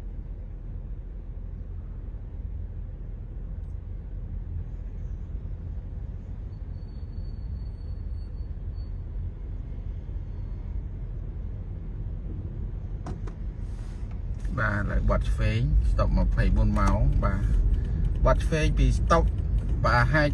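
A car engine hums low and steady, heard from inside the car.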